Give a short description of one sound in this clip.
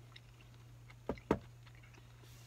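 A bowl is set down with a soft knock.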